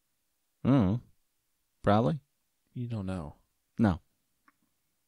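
A man speaks close to a microphone in short, lively bursts.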